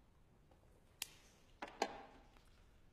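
A lighter clicks and flares.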